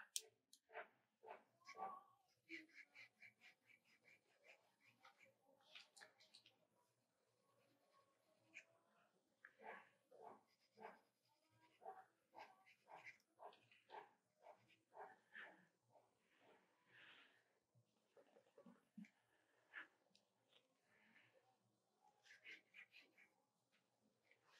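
A pencil scratches and taps on paper in quick strokes.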